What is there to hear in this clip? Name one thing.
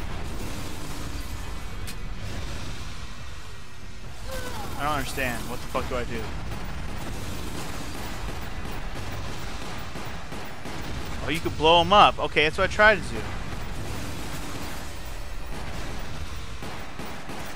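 A pistol fires repeated shots.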